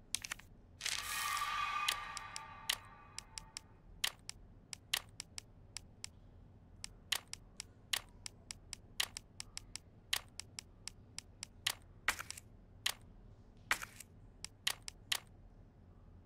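Short electronic menu clicks tick as a cursor moves through an inventory.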